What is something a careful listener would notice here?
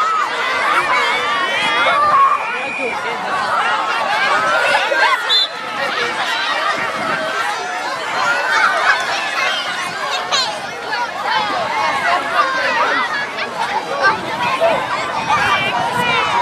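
Young children chatter and shout all around outdoors.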